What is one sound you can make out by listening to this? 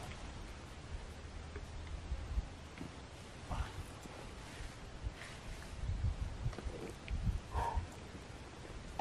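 A man rustles and shifts about under a tarp.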